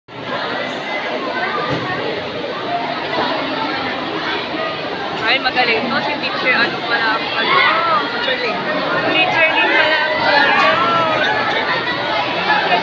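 A large crowd of children chatters and calls out in a big echoing hall.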